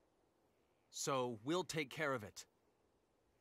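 A young man answers calmly, heard clearly up close.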